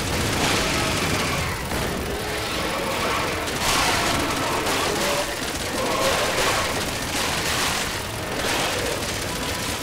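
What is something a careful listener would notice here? A mounted machine gun fires in rapid bursts.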